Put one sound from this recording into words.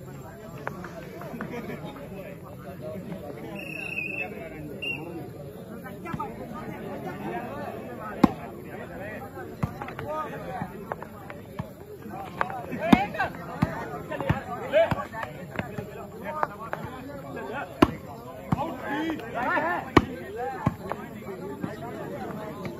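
A crowd of young men shout and call out outdoors.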